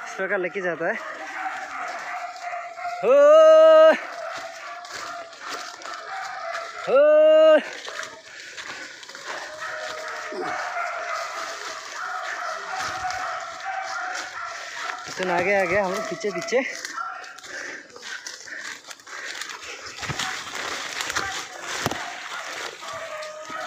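Leaves and branches rustle as men push through dense undergrowth.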